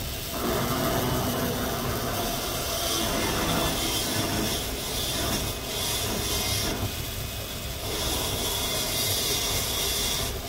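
A small rotary drill whirs steadily.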